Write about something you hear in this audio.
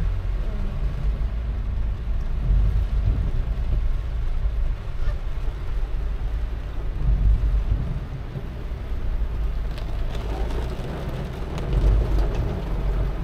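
Rain patters on the car's windshield and roof.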